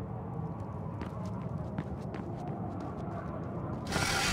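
Quick footsteps patter across a hard stone floor.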